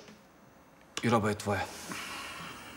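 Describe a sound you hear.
A second man answers with animation.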